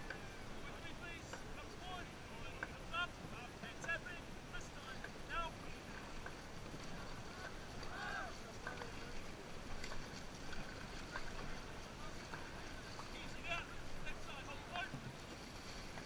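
A crew of young men and women shout calls in rhythm, outdoors.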